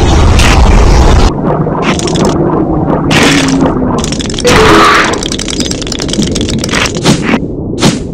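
Game sound effects crunch as a shark bites its prey.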